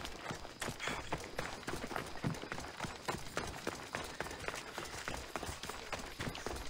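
Footsteps run quickly over gravel and stone.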